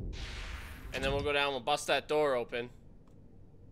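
A man speaks with animation, close into a headset microphone.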